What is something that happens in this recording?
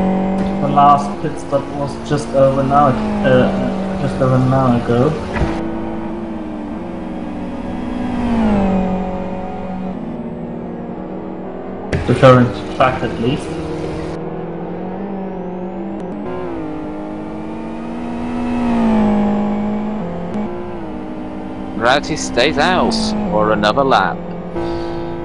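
A race car engine roars steadily, its pitch rising and falling as it shifts gears.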